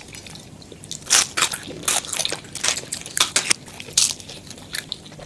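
Crispy food crunches and crackles close to a microphone.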